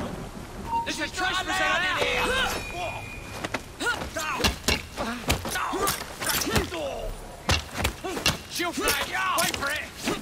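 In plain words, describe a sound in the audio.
Men grunt and cry out while fighting.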